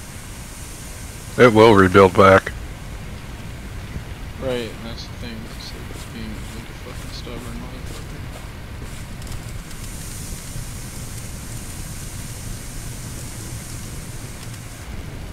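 Water sprays from a fire hose with a steady hiss.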